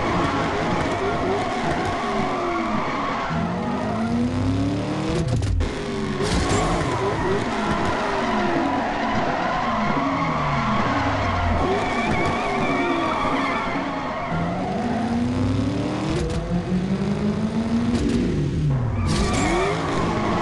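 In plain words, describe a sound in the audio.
Tyres screech while a car drifts around corners.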